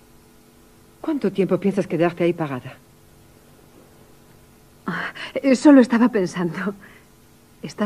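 A woman talks animatedly into a phone nearby.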